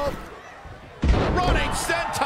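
A body slams onto a wrestling ring mat with a heavy thud.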